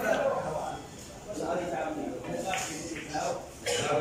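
Billiard balls clack together on a shot.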